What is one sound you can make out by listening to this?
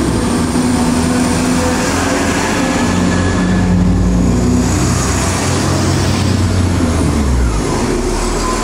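A diesel engine hums and drones as a train passes.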